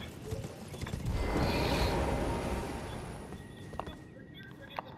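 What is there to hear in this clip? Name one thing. A bright magical whoosh swells and fades.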